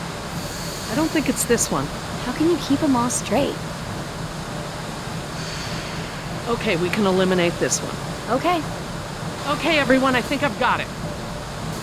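A man speaks calmly and thoughtfully.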